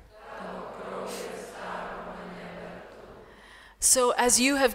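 A crowd of people sings softly together.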